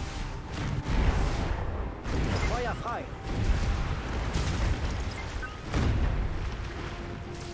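Explosions boom in a sea battle.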